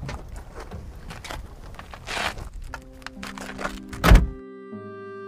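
Car doors slam shut.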